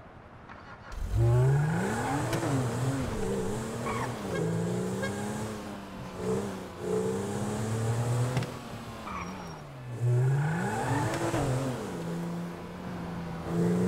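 A car engine revs up and down, roaring as the car drives.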